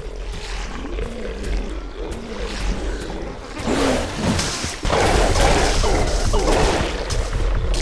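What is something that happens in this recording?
Laser weapons fire with sharp zapping bursts.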